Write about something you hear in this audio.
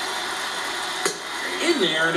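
A bat cracks sharply against a ball through a television speaker.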